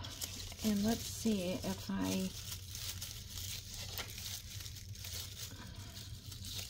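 Dry paper rustles and crinkles as it is handled.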